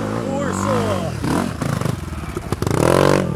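A dirt bike engine roars loudly as it passes close by.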